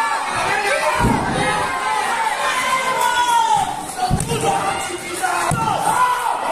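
Bodies slam down hard onto a wrestling mat with heavy thuds.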